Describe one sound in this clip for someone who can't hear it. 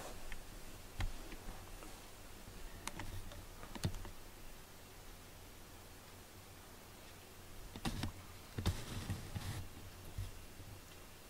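A cat's paws thump softly on wooden shelves.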